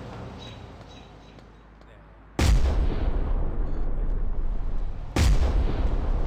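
A heavy punch lands with a loud thud.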